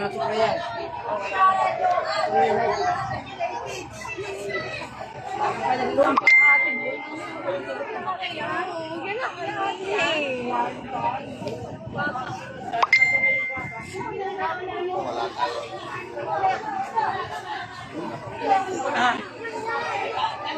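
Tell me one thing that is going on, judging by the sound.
A crowd of men and women talk and shout excitedly outdoors.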